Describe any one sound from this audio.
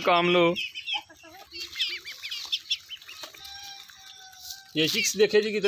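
Chicks peep in high, thin chirps.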